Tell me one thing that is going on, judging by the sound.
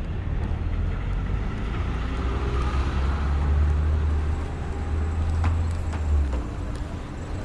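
A truck engine idles nearby with a low rumble.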